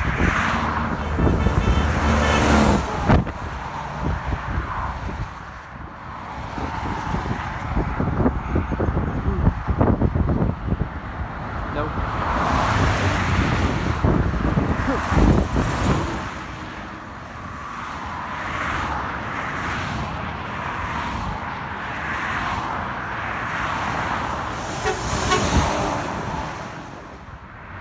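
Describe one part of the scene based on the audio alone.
A heavy truck's engine rumbles loudly as it passes.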